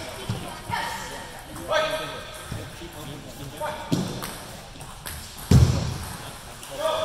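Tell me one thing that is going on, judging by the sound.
A table tennis ball bounces with sharp, hollow clicks in an echoing hall.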